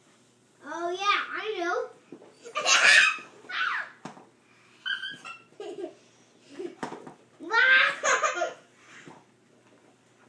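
A young boy talks playfully, close by.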